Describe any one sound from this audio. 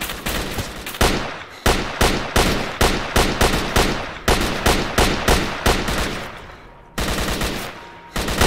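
A rifle fires single shots in quick succession.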